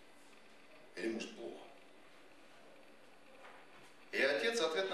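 A man reads aloud into a microphone.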